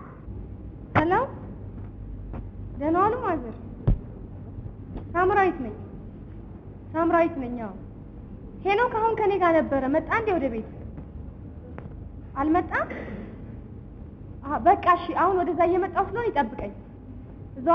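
A young woman speaks into a phone in a drawn-out, sing-song voice.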